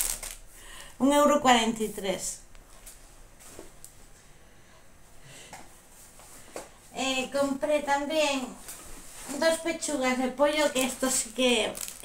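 A middle-aged woman talks calmly, close to the microphone.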